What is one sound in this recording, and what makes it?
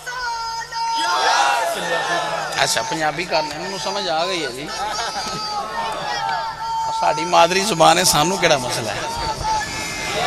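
A crowd of men calls out together in praise.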